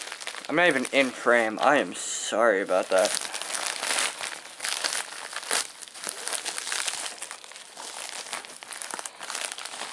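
Paper crinkles and rustles close by.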